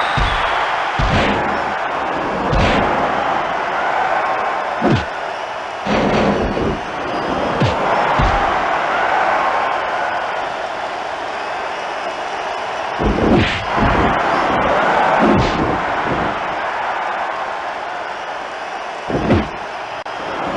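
Heavy blows land with loud thuds and crashes.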